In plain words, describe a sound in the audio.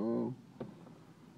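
A young man chuckles softly close by.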